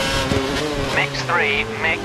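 Tyres squeal through a tight corner.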